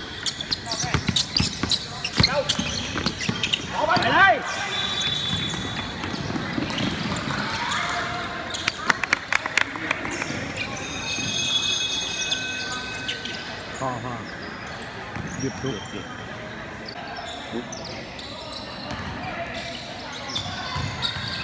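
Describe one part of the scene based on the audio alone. Young players shout to each other across the court.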